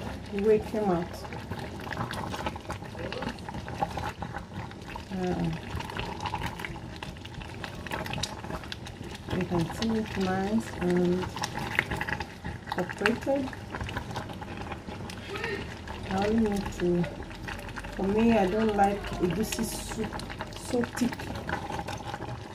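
A wooden spoon stirs and scrapes thick food in a metal pot.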